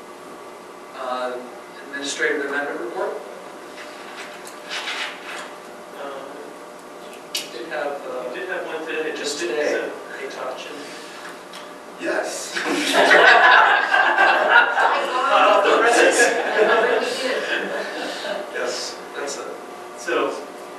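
A man speaks into a microphone at a distance, heard through loudspeakers in an echoing room.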